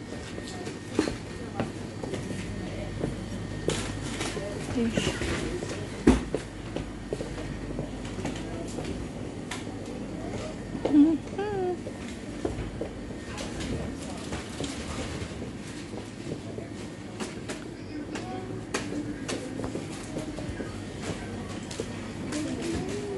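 Freezers hum steadily in the background.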